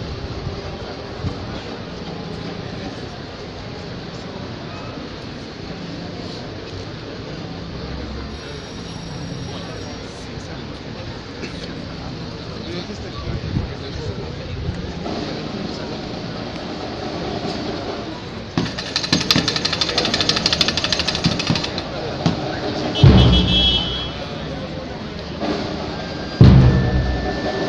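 A large crowd of men and women murmurs outdoors.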